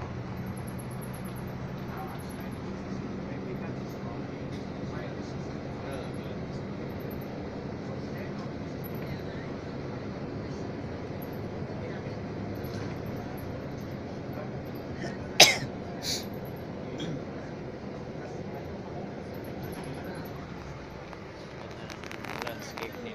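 A bus engine hums steadily while driving along a road.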